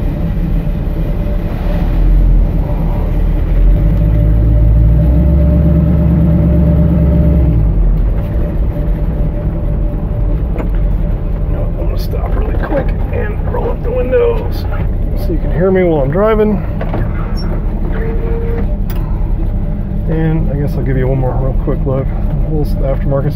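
A car engine rumbles deeply, loudest in the first few seconds.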